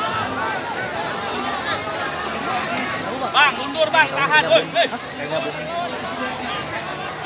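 A large crowd shouts and yells outdoors.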